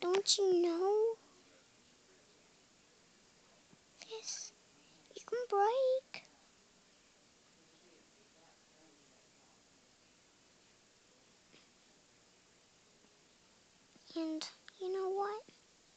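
A young girl speaks softly and close by, in short high-pitched phrases.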